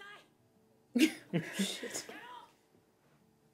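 A man laughs close by.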